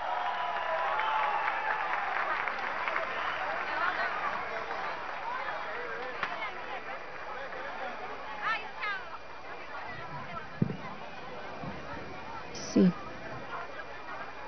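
A large crowd cheers and chatters outdoors.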